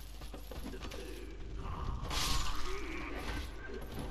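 Sword blows strike an enemy with heavy thuds.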